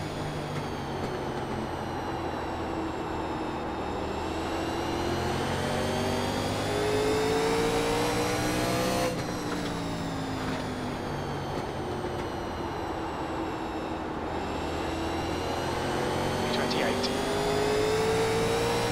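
A race car engine roars loudly, climbing in pitch, then dropping back and climbing again.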